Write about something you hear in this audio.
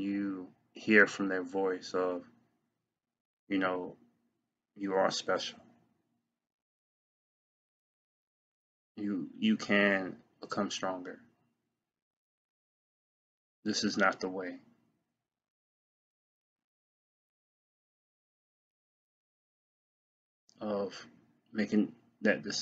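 A man speaks calmly and close to the microphone, in short bursts with pauses.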